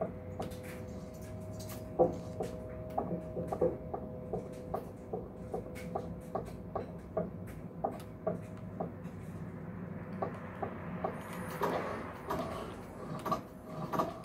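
Footsteps thud steadily on a wooden floor through a loudspeaker.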